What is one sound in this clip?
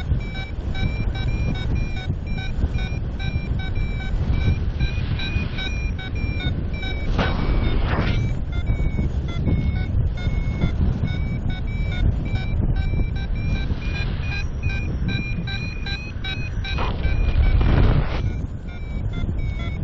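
Wind rushes and buffets loudly past the microphone high in the open air.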